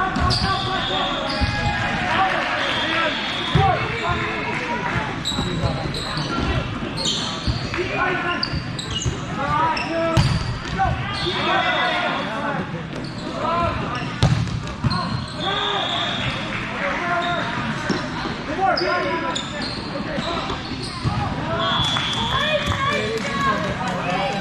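Many players shout and call out to one another throughout.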